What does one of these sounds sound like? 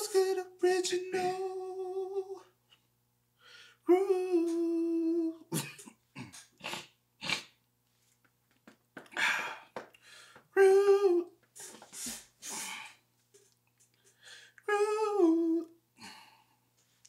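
A young man sings close by, holding long notes.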